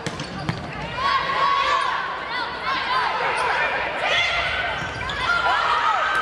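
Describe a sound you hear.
Young women players call out and shout to each other in an echoing hall.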